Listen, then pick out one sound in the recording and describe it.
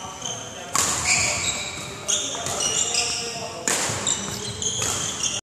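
Sneakers squeak sharply on a wooden floor in an echoing hall.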